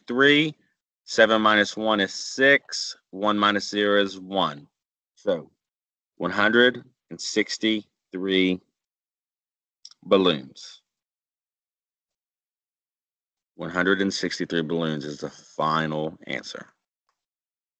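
A woman explains calmly and closely into a microphone, with pauses.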